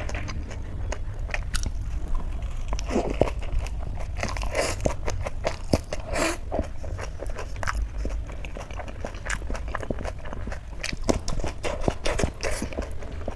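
Fingers squish and rustle through moist food on a metal plate.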